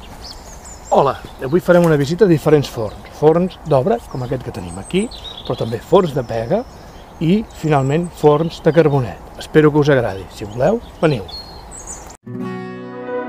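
A middle-aged man talks calmly and clearly, close by.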